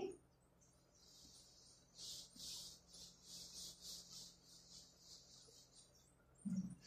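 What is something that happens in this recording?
A cloth rubs back and forth across a whiteboard in quick, even strokes.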